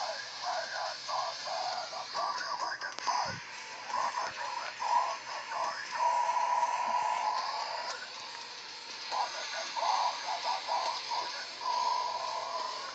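A man talks loudly through a tinny, distorted loudspeaker.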